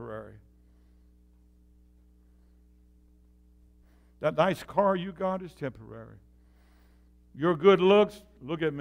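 An elderly man speaks calmly through a microphone and loudspeakers in an echoing hall.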